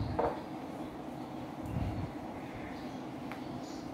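A whiteboard eraser rubs across a board.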